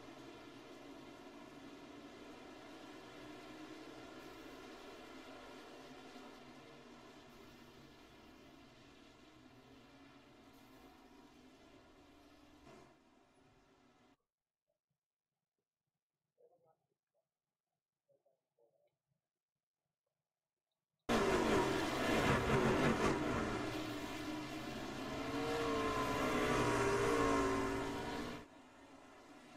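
Racing truck engines drone steadily as they circle a track.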